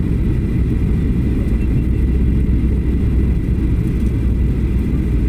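Jet engines roar steadily and deeply inside an airliner cabin.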